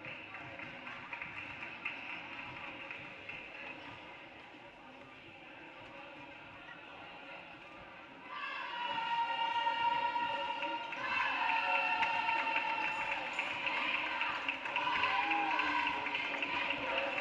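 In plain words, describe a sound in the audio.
A crowd chatters faintly in a large echoing hall.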